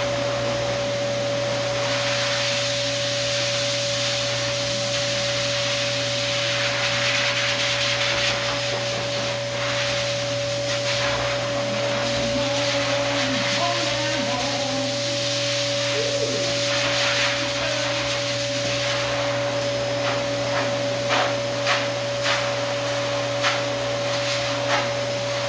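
A high-velocity pet dryer blows air through a dog's thick fur with a steady roar and whine.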